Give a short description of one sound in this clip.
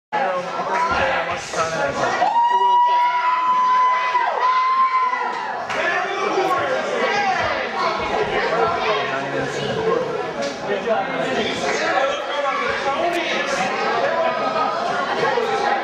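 A crowd of spectators shouts and cheers in an echoing hall.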